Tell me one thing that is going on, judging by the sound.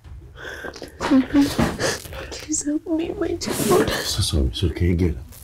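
A man speaks urgently and anxiously, close by.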